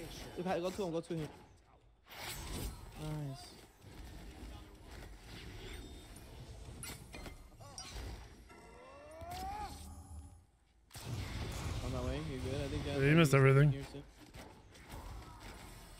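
Game sound effects of fighting clash and whoosh.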